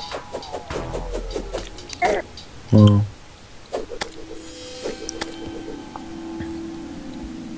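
Video game sound effects of quick swings and hits play in bursts.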